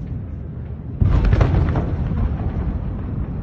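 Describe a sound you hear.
A sudden loud blast booms and rolls away.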